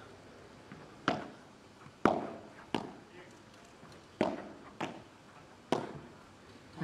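Padel rackets strike a ball back and forth in a quick rally.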